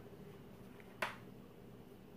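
A hair straightener clicks shut.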